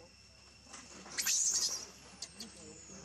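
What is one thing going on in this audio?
A baby monkey screams shrilly.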